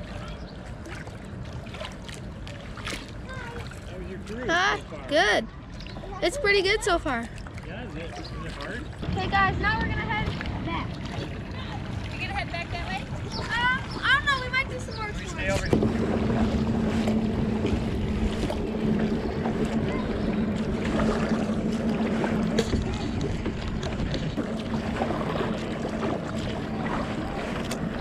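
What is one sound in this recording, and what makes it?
Paddles splash and dip in the water.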